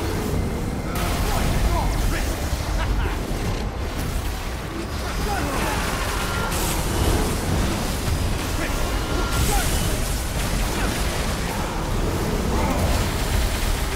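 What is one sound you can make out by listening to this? Fiery blasts boom and crackle.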